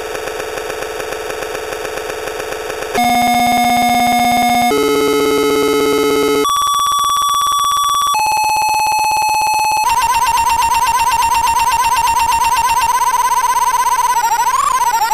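An electronic toy synthesizer plays harsh, buzzing tones that change pitch in steps.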